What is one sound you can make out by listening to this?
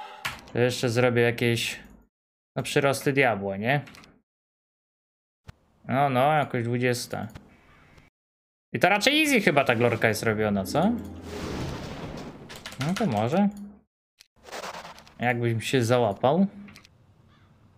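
A man talks with animation into a close microphone, in short bursts with pauses.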